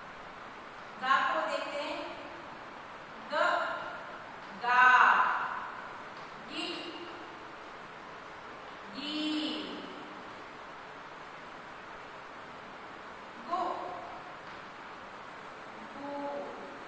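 A young woman speaks in short phrases, reading out syllables.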